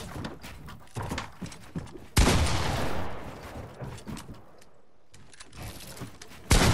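Game building pieces snap into place with quick clacks and thuds.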